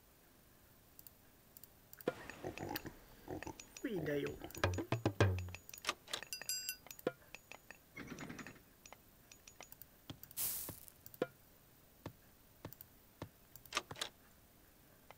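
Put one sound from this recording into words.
Short game interface clicks and chimes sound now and then.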